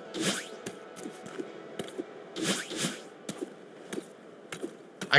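Short whooshing game sound effects play as a character dashes and jumps.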